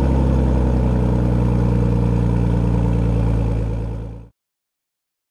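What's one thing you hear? A car engine idles with a deep, loud rumble from the exhaust, then cuts off.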